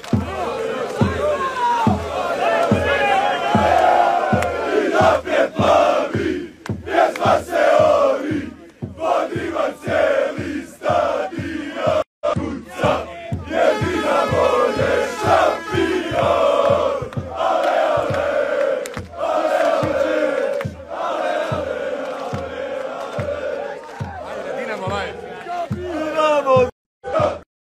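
A large crowd of men chants loudly in unison outdoors.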